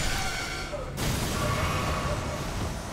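A magical blast bursts with a crackling roar.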